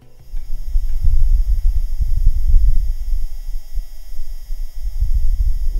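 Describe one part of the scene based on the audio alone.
Wind gusts rumble low and unevenly against the microphone.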